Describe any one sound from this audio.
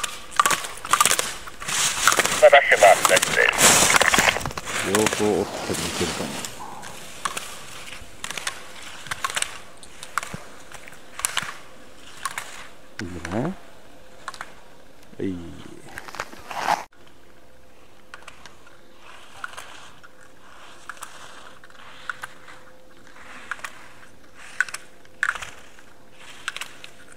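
Skis scrape and hiss over hard snow in quick turns.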